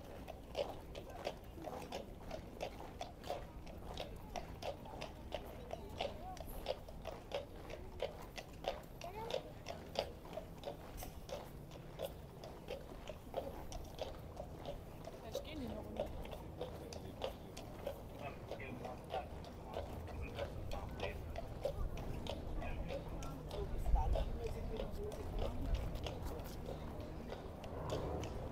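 Boots march in step on the road.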